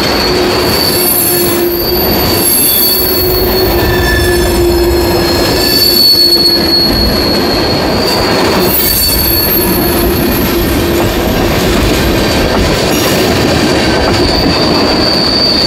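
Train wheels squeal high and shrill against the rails.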